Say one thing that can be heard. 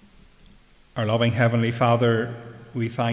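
An elderly man preaches through a microphone.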